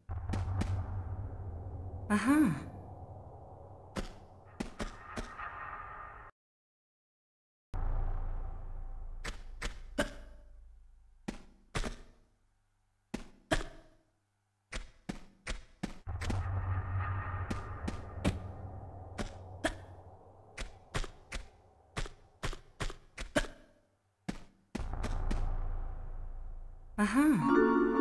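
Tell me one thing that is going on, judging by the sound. Quick footsteps tap on stone floors.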